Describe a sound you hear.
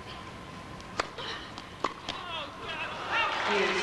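A tennis ball is struck sharply with a racket, echoing in a large hall.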